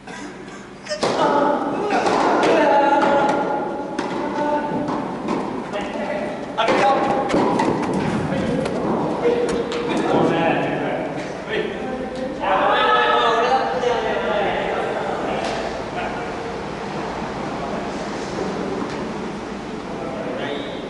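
Men call out and talk loudly nearby in an echoing hall.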